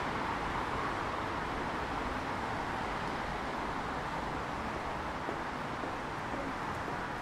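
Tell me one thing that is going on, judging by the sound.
Footsteps of many people walk on paving stones.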